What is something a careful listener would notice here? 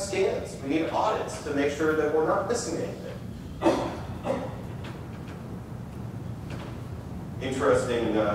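A man speaks calmly through a microphone in a large room.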